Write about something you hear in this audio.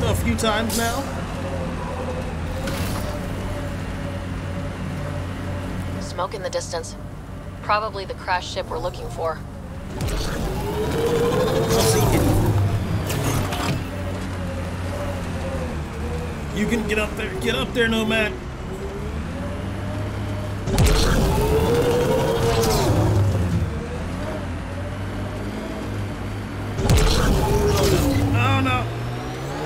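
A young man talks casually into a headset microphone.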